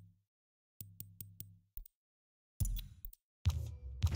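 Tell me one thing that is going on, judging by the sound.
Menu clicks tick softly.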